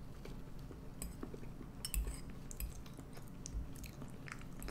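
A spoon scrapes and clinks in a bowl.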